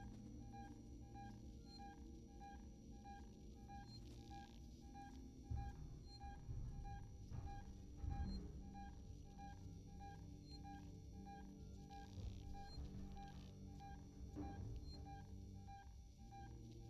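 A motion tracker beeps in a fast, steady rhythm.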